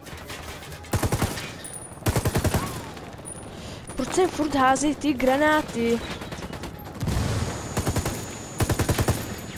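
Rapid bursts of gunfire rattle close by.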